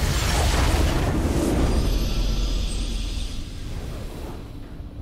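A game crystal shatters in a loud rumbling blast that slowly fades.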